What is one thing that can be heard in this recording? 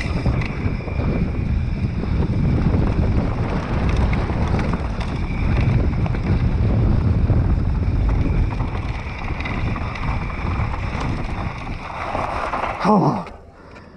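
Bicycle tyres rumble and crunch over a dirt trail.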